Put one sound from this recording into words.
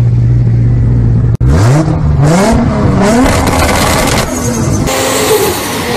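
A sports car engine revs loudly and rises in pitch.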